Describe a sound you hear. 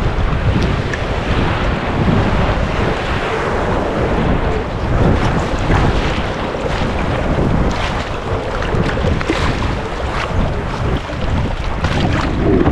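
Waves crash against a rock.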